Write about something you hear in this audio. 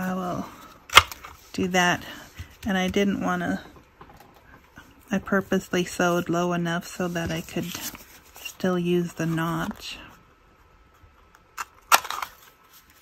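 A paper punch snaps shut with sharp clicks.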